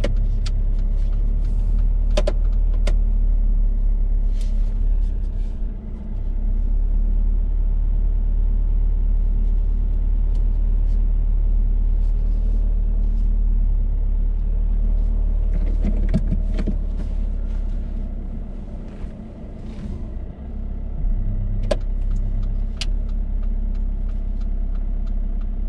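A man speaks calmly to a driver beside him.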